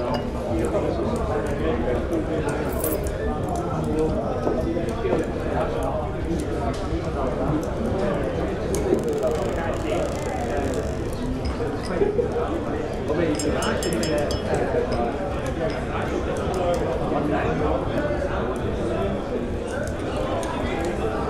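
A crowd of men and women chatters and murmurs indoors.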